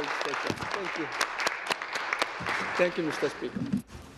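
A crowd applauds and thumps desks.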